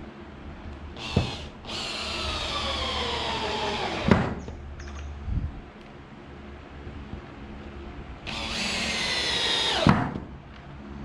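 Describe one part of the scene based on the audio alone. A cordless drill whirs as it drives screws into wood, slowing in pitch as each screw tightens.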